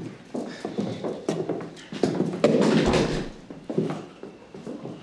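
Footsteps sound on a wooden floor.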